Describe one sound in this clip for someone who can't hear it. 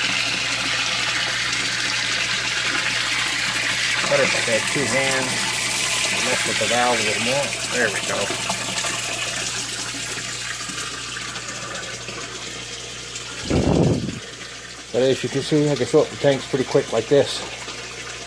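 Water splashes and bubbles steadily into a tank.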